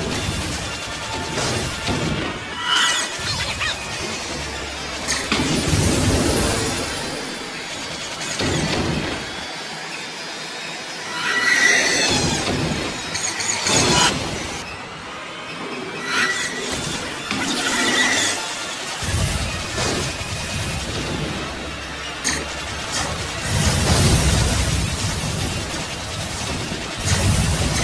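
Explosions boom as enemy ships are hit.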